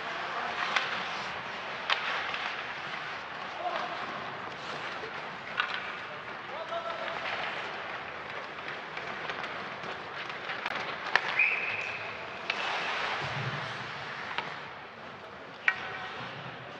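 Hockey sticks and the puck click and clack sharply.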